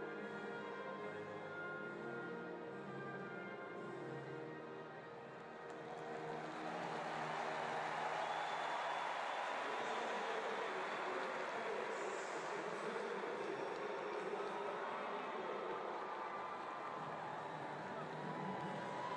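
A large crowd murmurs and cheers in an open stadium, swelling to a loud roar.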